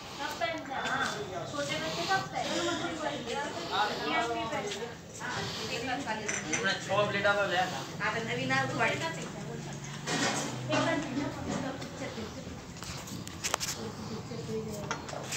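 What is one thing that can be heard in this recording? A woman talks close by.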